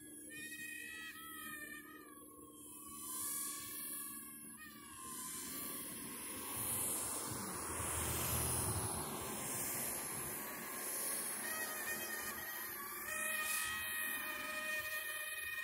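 A small drone's motors whine steadily overhead, rising and falling in pitch.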